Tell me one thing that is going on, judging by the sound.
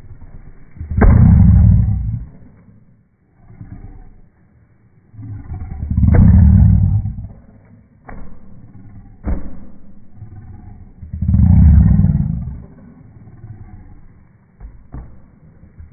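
Hands slap on a hollow plastic ball.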